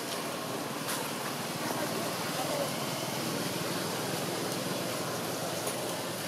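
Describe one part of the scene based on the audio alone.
A small monkey shuffles over dry leaves nearby.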